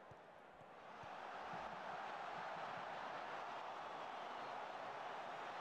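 A stadium crowd cheers louder in a swelling roar.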